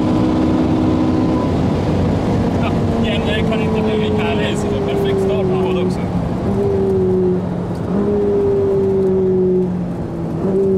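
A sports car engine roars loudly at full throttle, its pitch climbing and dropping as it shifts gears.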